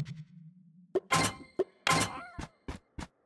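A bright chime rings as a loot box opens.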